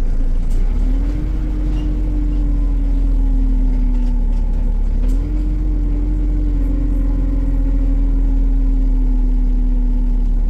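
A bus engine hums steadily, rising and falling in pitch as the bus moves.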